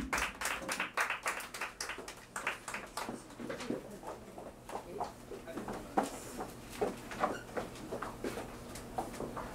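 Drums beat a rhythm.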